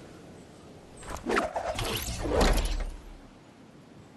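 Loud whooshing bursts roar past in a game.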